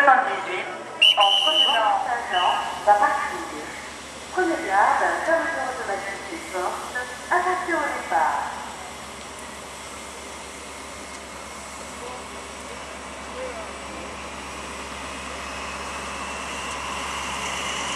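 A locomotive engine rumbles steadily as a train slowly approaches.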